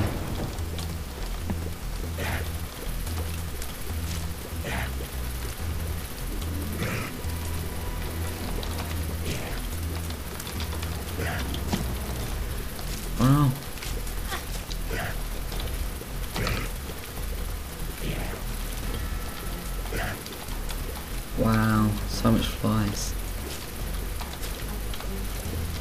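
Small shots pop and splash in quick bursts.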